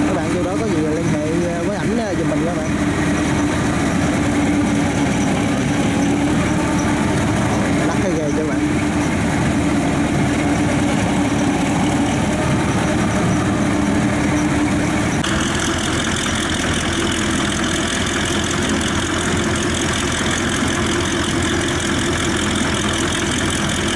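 A boat engine drones steadily nearby.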